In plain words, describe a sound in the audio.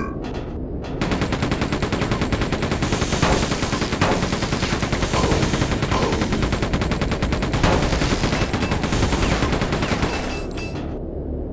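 A rapid-fire gun fires in quick bursts.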